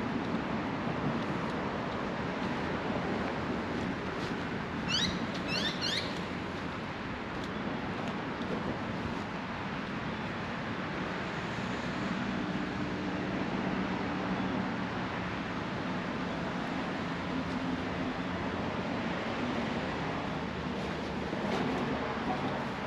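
Wind blows across the microphone outdoors.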